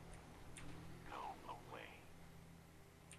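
A man's gruff voice speaks briefly through a crackly intercom loudspeaker.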